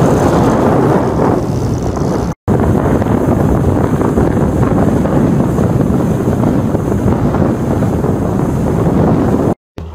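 Water rushes and splashes in a boat's wake.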